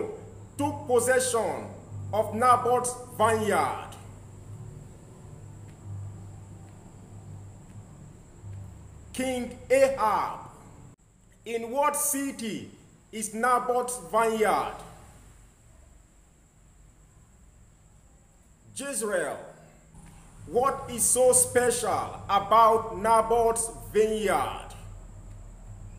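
A young man speaks close to a microphone, with pauses between phrases.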